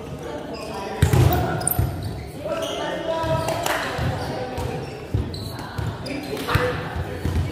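A ball thuds sharply off hands and the floor in a large echoing hall.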